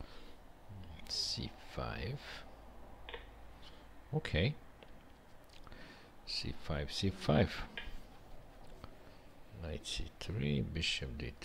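A middle-aged man speaks calmly and close into a headset microphone, in short bursts.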